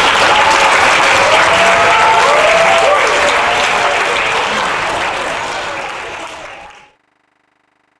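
A large crowd chatters and cheers loudly in an echoing hall.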